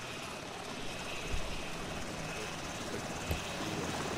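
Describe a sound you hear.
A helicopter's rotor thumps nearby.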